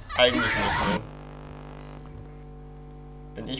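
Electronic static buzzes and hums steadily.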